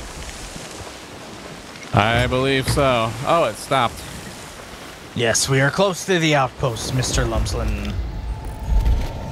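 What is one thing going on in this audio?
Waves roll and splash on the open sea.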